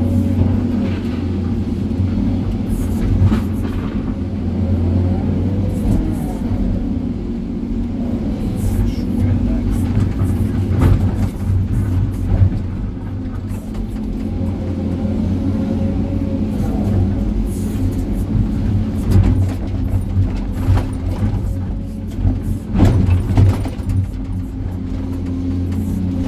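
An excavator's diesel engine rumbles steadily from inside the cab.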